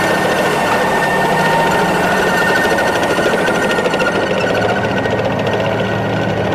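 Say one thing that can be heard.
Metal tracks clatter and squeal over dry ground.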